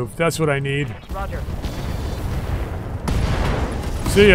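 Heavy guns fire in a rapid burst.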